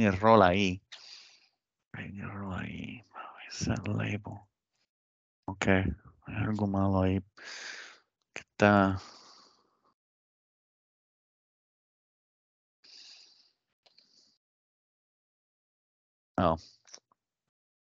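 A man talks calmly through a headset microphone over an online call, with pauses.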